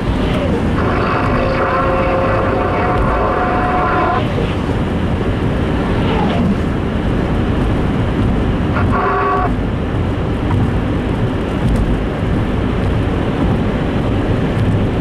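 Tyres hiss steadily on a wet road.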